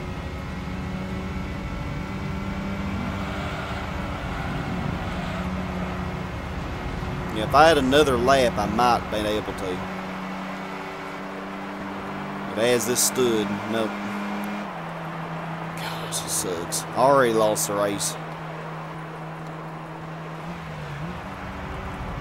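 A racing car engine drones steadily at high speed.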